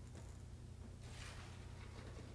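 Sheets of paper rustle.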